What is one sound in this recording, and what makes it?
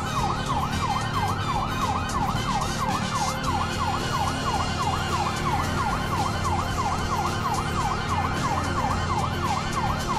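A siren wails rapidly up and down without pause.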